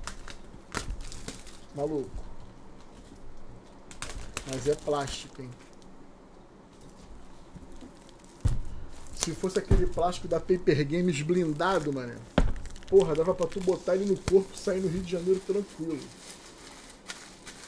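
Plastic wrapping crinkles and rustles as hands handle a box.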